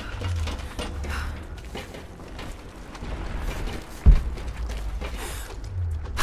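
Footsteps run quickly.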